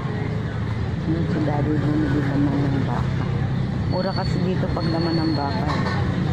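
A motorcycle engine hums as it rides closer.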